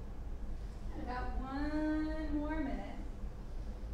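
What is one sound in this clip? A woman speaks calmly, giving slow, drawn-out instructions.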